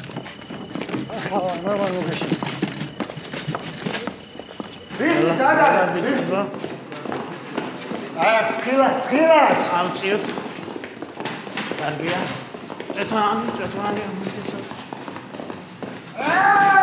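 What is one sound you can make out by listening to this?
A man speaks urgently nearby.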